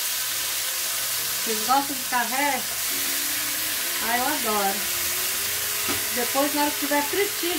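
Meat sizzles steadily in hot oil.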